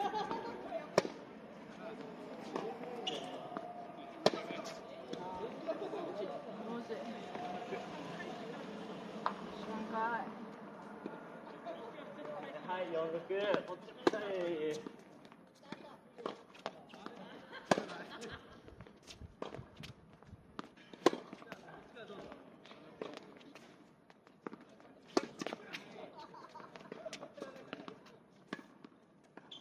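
A tennis racket strikes a ball with sharp pops, again and again.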